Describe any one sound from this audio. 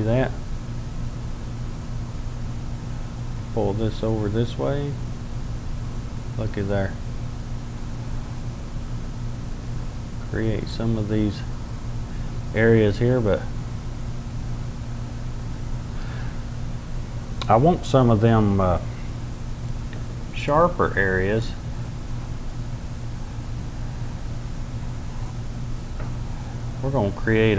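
A brush strokes softly across a canvas.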